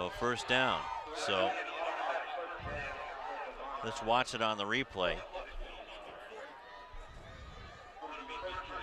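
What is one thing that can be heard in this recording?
A crowd cheers in a large open stadium.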